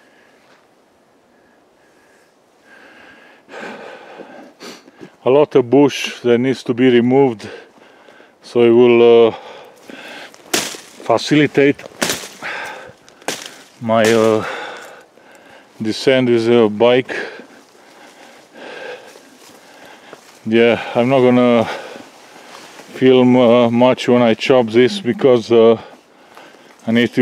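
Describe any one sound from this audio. Leafy branches rustle and brush past as someone pushes through dense bushes.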